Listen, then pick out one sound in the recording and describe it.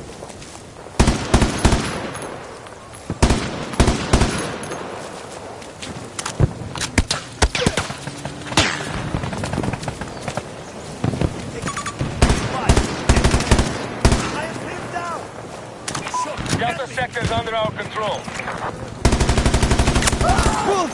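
Rifle shots crack in bursts.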